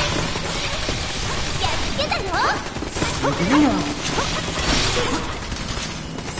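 Laser blasts fire in quick bursts.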